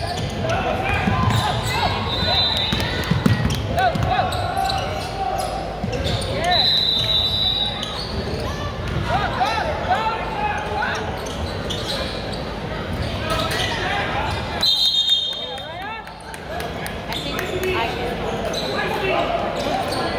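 A crowd of spectators cheers and calls out in a large echoing hall.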